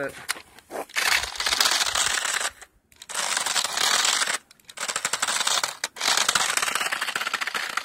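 A small toy car's electric motor whines loudly in short bursts.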